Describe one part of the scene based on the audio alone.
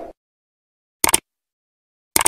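A mouse button clicks sharply.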